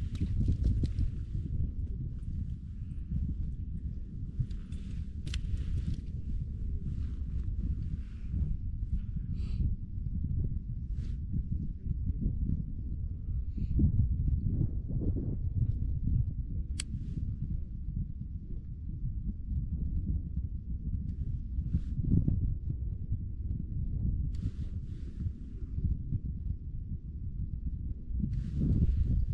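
Wind blows across open ice.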